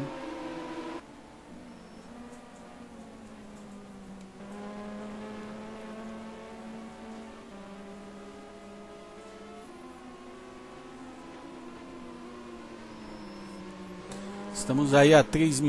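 A racing car engine drones steadily as the car drives past.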